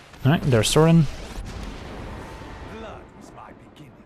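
A magical spell effect whooshes and crackles.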